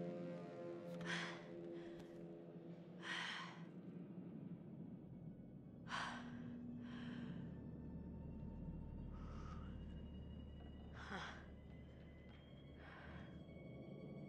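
A young woman breathes in sharp, frightened gasps.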